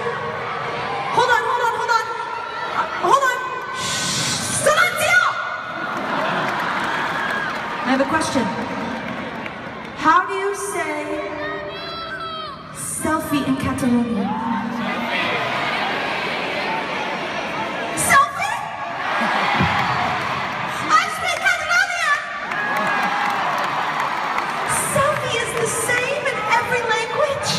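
A woman speaks into a microphone over loudspeakers in a large echoing arena.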